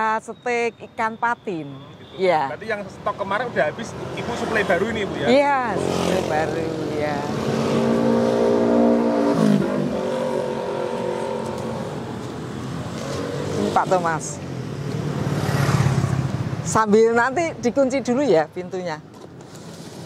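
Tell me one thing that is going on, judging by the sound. An elderly woman speaks cheerfully and close up through a clip-on microphone.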